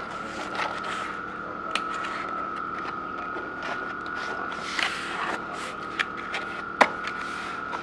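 A cardboard box scrapes and thumps as it is folded shut.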